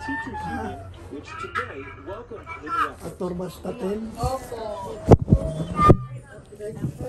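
An elderly man talks loudly nearby.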